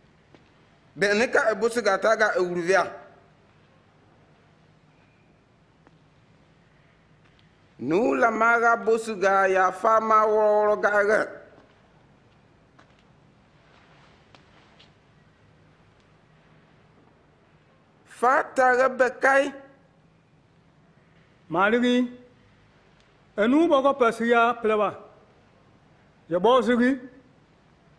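A man speaks firmly and slowly, in short bursts with pauses.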